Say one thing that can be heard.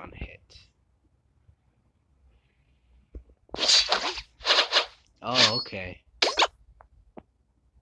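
Arrows whoosh and strike in a cartoon battle game.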